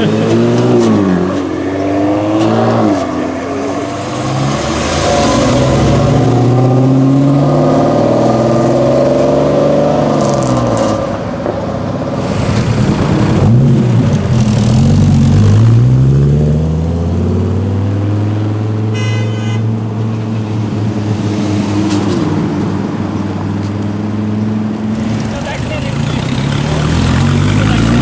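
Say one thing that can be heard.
A sports car engine revs loudly and roars away.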